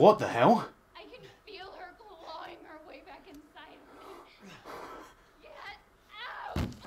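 A young woman speaks in a frightened, strained voice.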